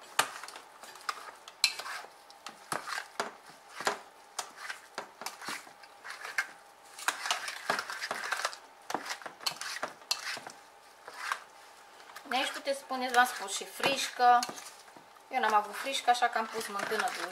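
A whisk clinks and scrapes against a metal pot.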